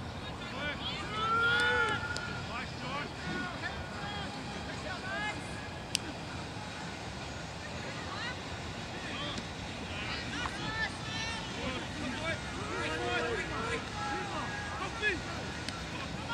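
Young players shout and call out to each other outdoors across an open field.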